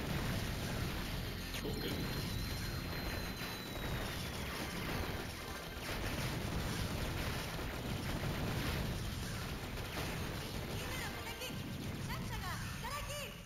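Rapid gunfire and explosions crackle constantly in a video game.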